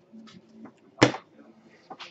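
A deck of cards is set down on a table with a tap.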